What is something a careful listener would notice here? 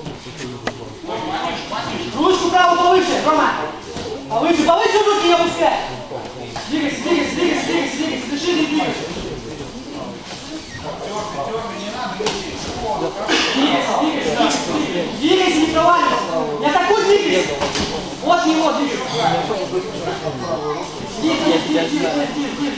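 A crowd of men shouts encouragement loudly in an echoing hall.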